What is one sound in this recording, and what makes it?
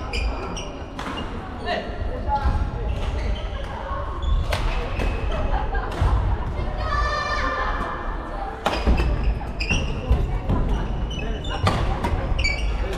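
A shuttlecock is struck with rackets in sharp, quick smacks, echoing through a large hall.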